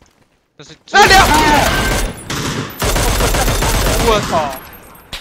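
Rifle shots ring out in quick bursts.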